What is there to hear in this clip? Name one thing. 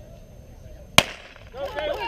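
A starting pistol fires once with a sharp crack.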